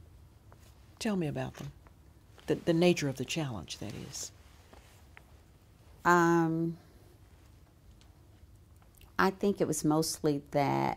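An elderly woman speaks calmly and close to a microphone.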